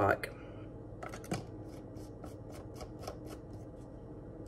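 Plastic clicks and taps as a cap is twisted on a bottle.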